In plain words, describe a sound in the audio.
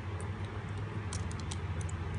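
A small screwdriver ticks and scrapes against metal parts.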